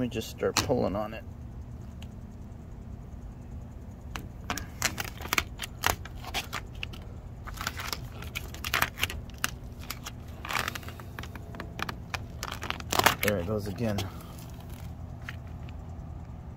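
A hand rubs and smooths plastic film against a metal surface, with soft crinkling and squeaks.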